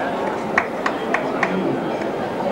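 Wooden staffs knock sharply on a stage floor.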